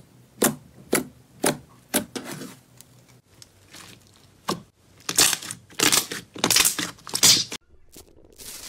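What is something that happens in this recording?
Squishy slime squelches and pops under a pressing hand.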